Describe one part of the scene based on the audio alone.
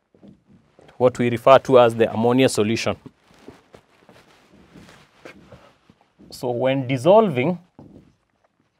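A man speaks clearly and with animation, close to a microphone.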